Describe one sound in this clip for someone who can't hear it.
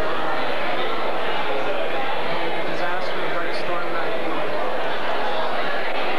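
A crowd of men and women chatter loudly in a large echoing hall.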